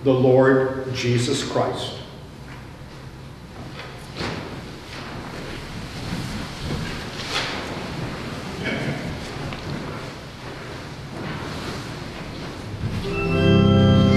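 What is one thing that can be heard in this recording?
An elderly man chants in an echoing hall.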